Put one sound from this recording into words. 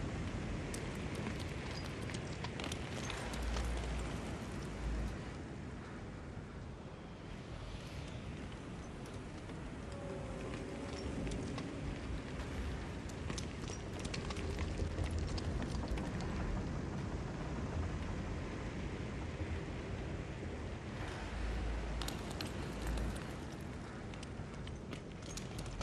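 Wind blows steadily outdoors in gusts.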